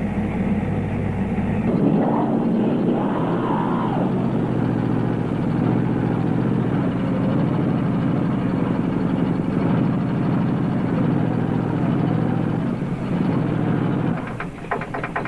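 A car engine revs hard.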